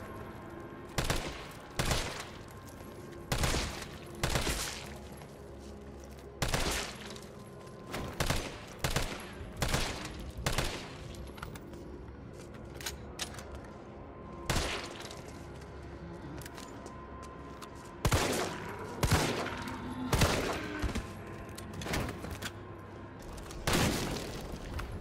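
An assault rifle fires single gunshots.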